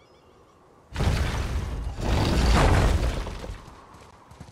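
Heavy stone doors grind and rumble open.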